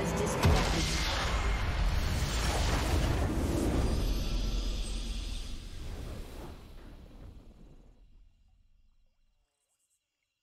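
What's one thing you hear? A triumphant orchestral fanfare swells and then fades away.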